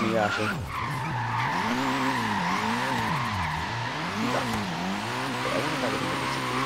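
Tyres squeal steadily on pavement.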